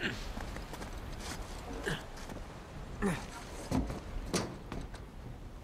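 A man grunts with effort while climbing.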